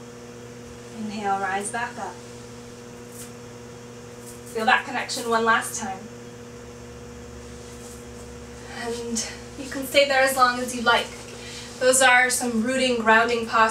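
A young woman speaks calmly nearby, with pauses.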